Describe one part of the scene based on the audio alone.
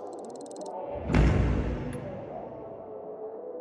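A deep whoosh swells and fades as a map opens.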